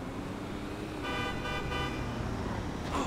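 A car horn honks.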